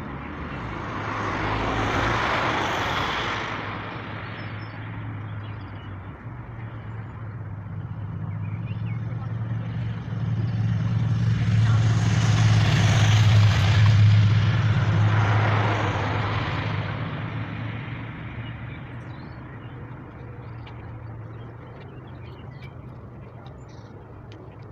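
A heavy machine engine drones steadily, growing louder and then easing off.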